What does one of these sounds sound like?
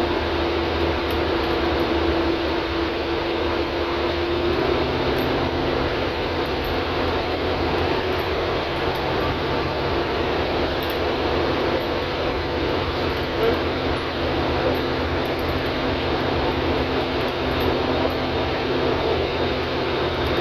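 A bus rattles and its tyres roar on the road.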